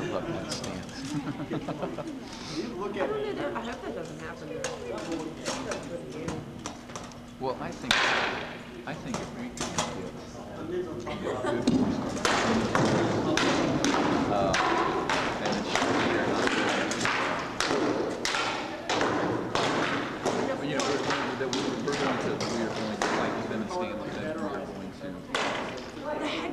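Swords clack and knock against shields in quick, uneven blows.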